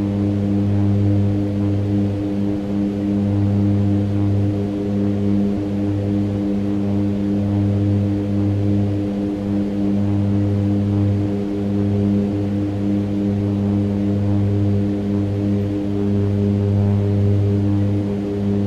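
Aircraft engines drone steadily with a low, even hum.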